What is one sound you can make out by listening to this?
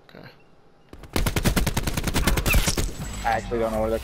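A rifle fires a rapid, loud burst of shots.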